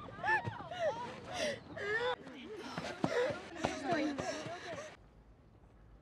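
Voices chatter and shout outdoors.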